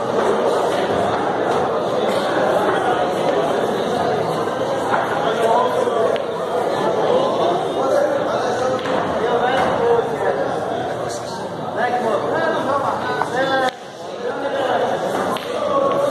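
Several men chatter nearby.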